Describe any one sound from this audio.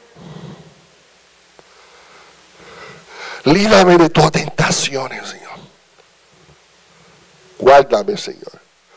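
A middle-aged man speaks with animation into a microphone, heard through a loudspeaker.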